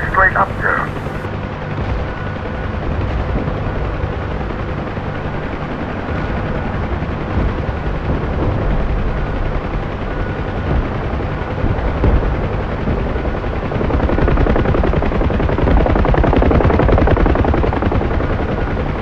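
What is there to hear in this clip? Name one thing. A helicopter engine and rotor thrum loudly and steadily from inside the cabin.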